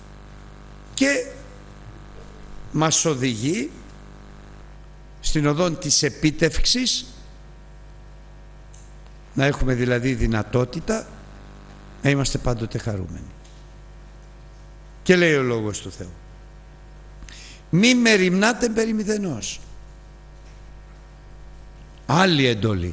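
An elderly man speaks into a microphone with emphasis, in short bursts with pauses.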